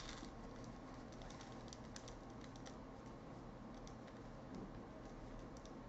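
Stacks of cards tap softly on a table.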